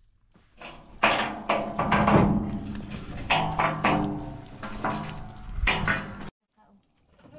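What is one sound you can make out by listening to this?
Metal truck gates clank and rattle loudly.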